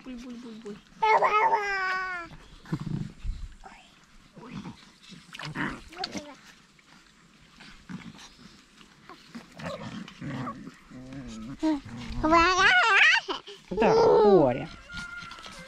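A toddler babbles and squeals in a high voice.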